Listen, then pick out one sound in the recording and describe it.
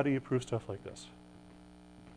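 A man speaks briefly.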